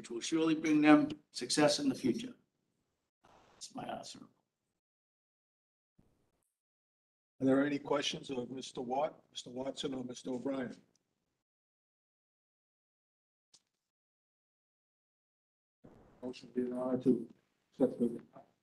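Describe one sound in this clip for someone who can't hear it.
An older man speaks calmly into a microphone, in short bursts with pauses.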